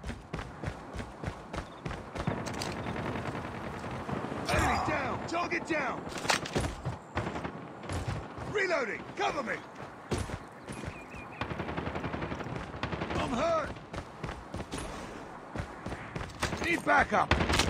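Footsteps thud quickly on wood and dirt.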